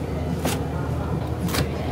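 A knife crunches through a crisp fried cutlet.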